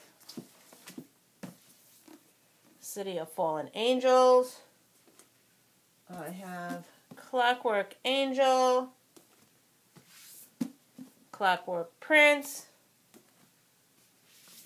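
Books knock and rustle as they are pulled from a shelf.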